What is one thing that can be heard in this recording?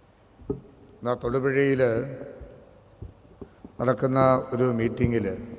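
A man speaks with feeling into a microphone, heard over loudspeakers in a large echoing hall.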